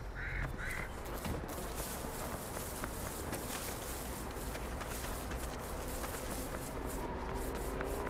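Footsteps run over gravel and dirt.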